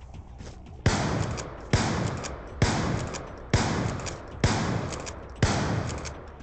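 A heavy gun fires single loud booming shots about once a second, each echoing away.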